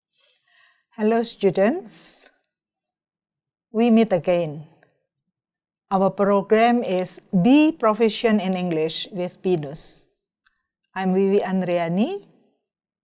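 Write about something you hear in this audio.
An elderly woman speaks calmly into a microphone, close by.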